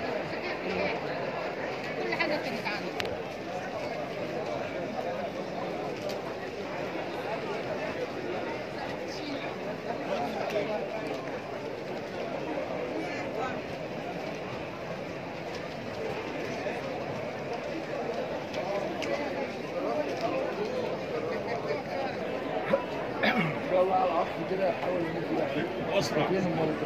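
A crowd of men and women chatters loudly, with many voices overlapping.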